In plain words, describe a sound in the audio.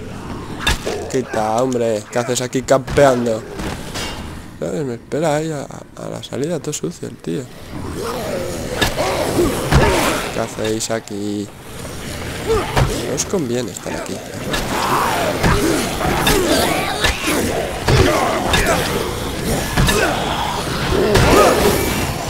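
Heavy blows thud and splatter against bodies.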